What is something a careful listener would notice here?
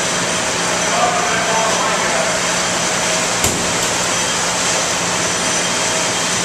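Machinery hums and whirs steadily in a large echoing hall.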